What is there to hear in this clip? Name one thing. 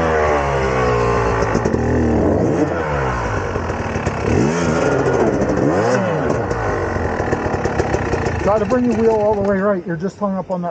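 A dirt bike engine revs loudly, rising and falling.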